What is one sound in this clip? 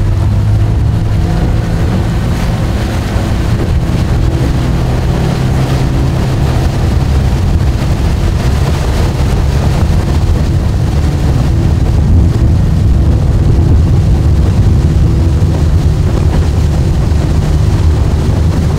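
A four-stroke outboard motor drones at cruising speed.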